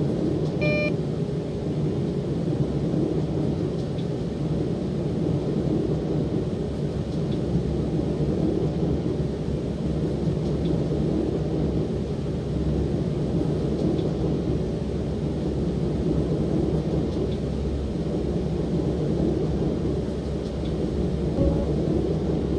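A train engine rumbles steadily as the train runs along the track.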